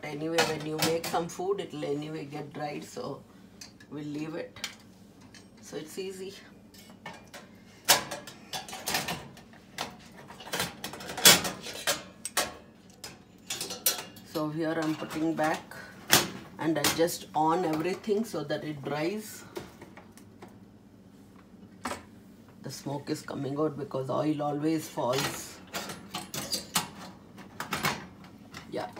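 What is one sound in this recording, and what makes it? Metal drip pans and burner coils clink and clatter against a stovetop.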